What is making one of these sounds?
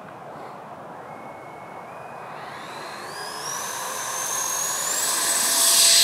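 A model jet engine whines and rises to a high-pitched scream as it spools up.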